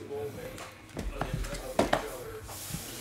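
Cardboard boxes knock and slide on a table.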